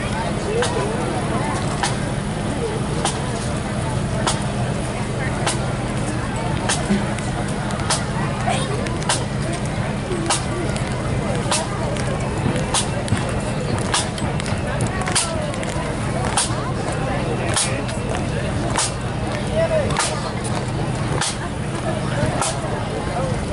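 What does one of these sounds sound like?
Bagpipes play a steady droning tune outdoors.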